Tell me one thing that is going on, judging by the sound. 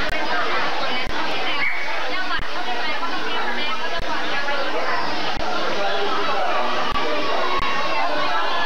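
A crowd of women and men chatter and talk over one another close by.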